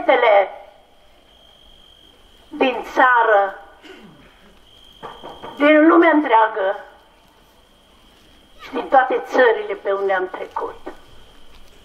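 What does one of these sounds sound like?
A man chants in a sung voice through a loudspeaker, in short phrases with pauses.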